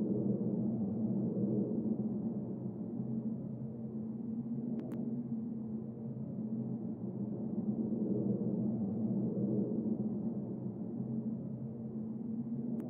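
A plane's engine drones steadily in a low hum.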